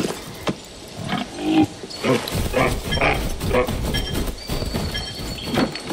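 A large bird flaps its wings.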